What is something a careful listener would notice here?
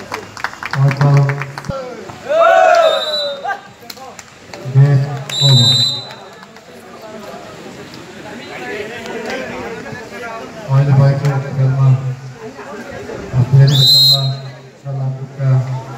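Several young men call out and chatter in the background.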